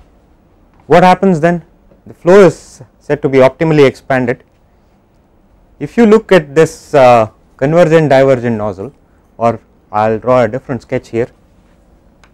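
A man lectures calmly and clearly.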